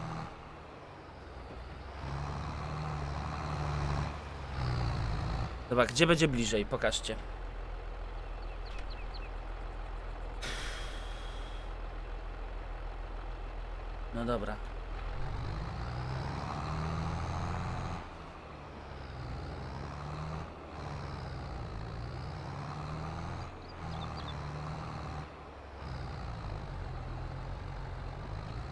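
A tractor engine drones steadily, rising and falling.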